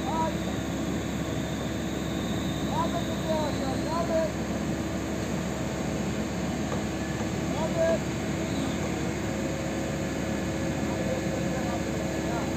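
An engine rumbles steadily nearby.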